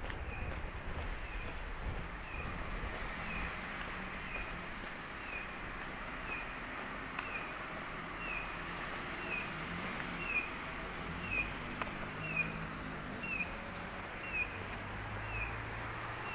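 A pedestrian crossing signal chirps in a steady, quick rhythm.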